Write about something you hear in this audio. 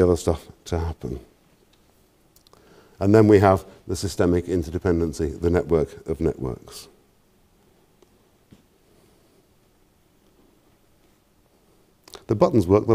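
A middle-aged man lectures calmly through a microphone, with pauses.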